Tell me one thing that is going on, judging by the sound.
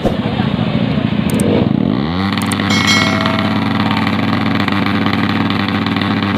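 A motorcycle engine revs and roars close by.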